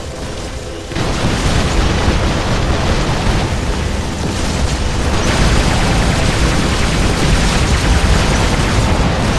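Heavy machine guns fire in rapid bursts.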